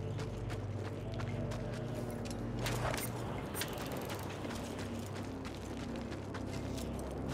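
Footsteps crunch on gravel at a steady pace.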